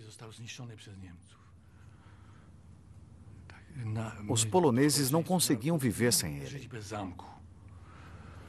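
A middle-aged man speaks calmly and close up.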